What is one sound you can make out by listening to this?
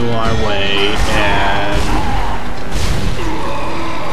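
A weapon fires in short, sharp blasts.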